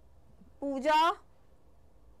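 A young woman says a short word into a microphone, her voice rising.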